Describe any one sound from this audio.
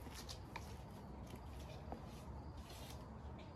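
A bow creaks softly as its string is drawn back.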